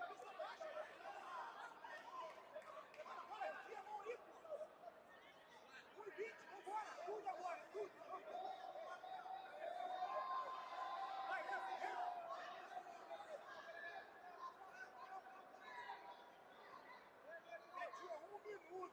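A crowd of people shouts and calls out in a large echoing hall.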